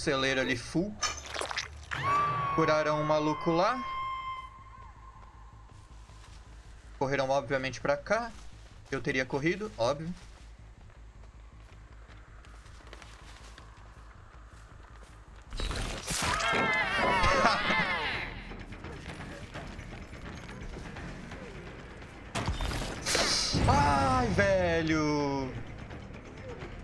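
A young man talks with animation into a close microphone, in bursts.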